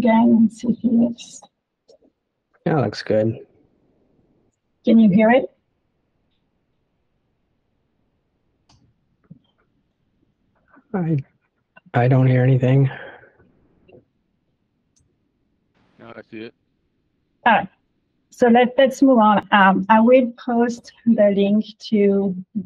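A young woman speaks over an online call, in short bursts between pauses.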